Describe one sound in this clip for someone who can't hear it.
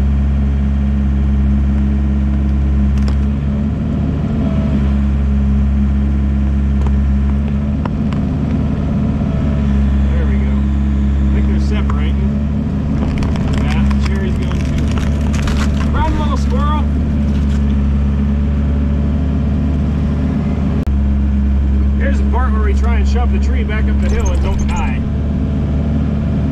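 A heavy machine's diesel engine rumbles steadily up close.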